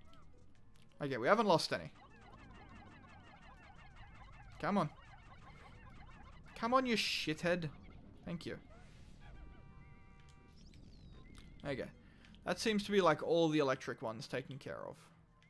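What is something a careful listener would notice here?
Small cartoon creatures chirp and squeak in high voices in short bursts.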